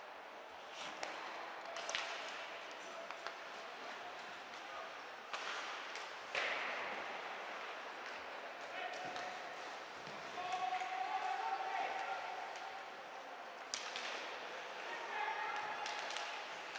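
Hockey sticks clack against the puck now and then.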